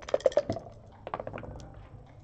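A clock button is pressed with a click.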